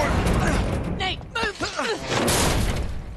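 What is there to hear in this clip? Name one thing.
A woman shouts urgently.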